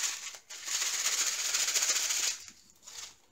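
A plastic bag crinkles close by.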